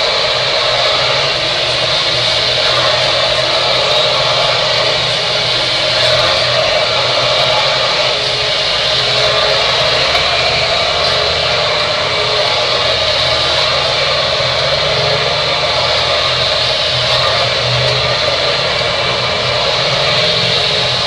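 A hair dryer blows with a steady, loud whir close by.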